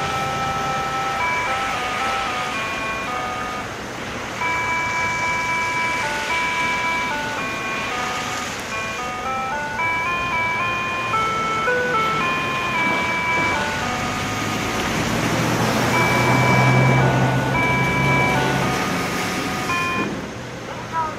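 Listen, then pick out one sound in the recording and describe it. A loudspeaker plays an electronic melody of steady beeping notes outdoors.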